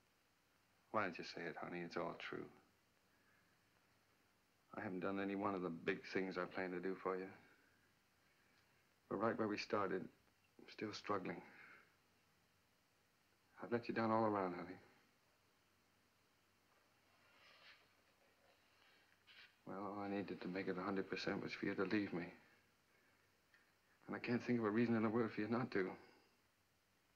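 A man speaks calmly and quietly, close by, in short phrases with pauses.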